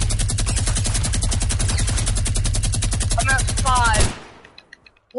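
A gun fires in a rapid, steady burst.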